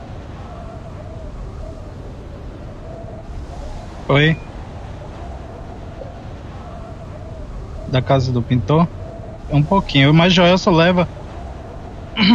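Wind rushes steadily past a falling skydiver.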